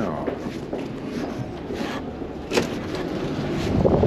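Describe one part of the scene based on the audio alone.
A heavy glass door is pushed open.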